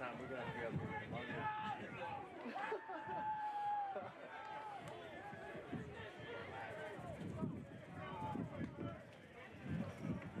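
A crowd of people chatters and calls out across an open field.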